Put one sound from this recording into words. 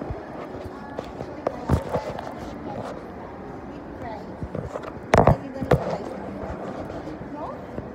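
A phone rubs and knocks against clothing.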